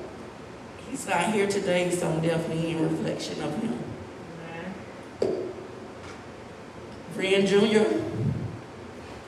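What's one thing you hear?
A woman speaks slowly and solemnly through a microphone in a room with some echo.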